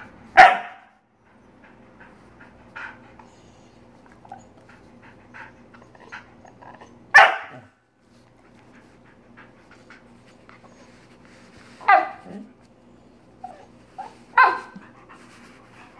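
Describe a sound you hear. A dog lets out short, loud howling yelps now and then.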